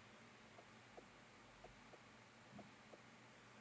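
A glass beaker is set down on a table with a light knock.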